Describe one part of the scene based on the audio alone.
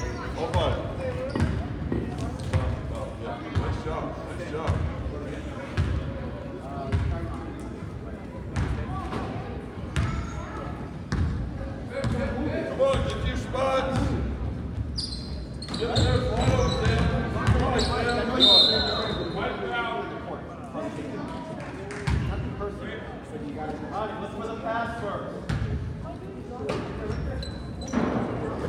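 Sneakers squeak and thud on a wooden court in a large echoing gym.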